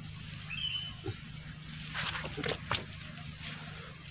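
A man's footsteps scuff on dry earth.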